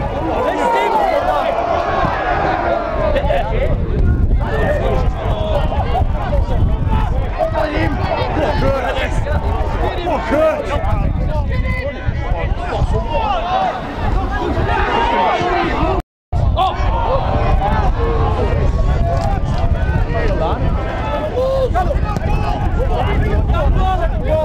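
A crowd of football spectators shouts and cheers outdoors.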